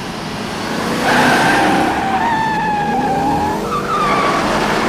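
Tyres squeal on asphalt as a car swerves.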